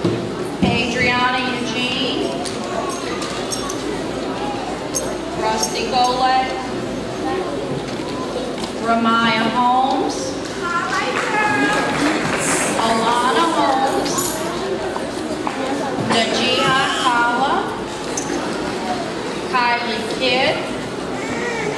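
A woman reads out names over a microphone in a large echoing hall.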